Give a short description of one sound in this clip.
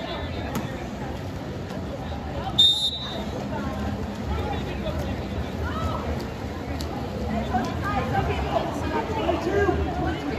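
A crowd of spectators shouts and cheers from the stands outdoors.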